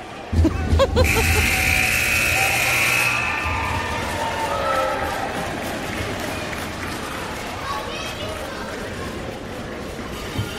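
Skates scrape across the ice in a large echoing arena.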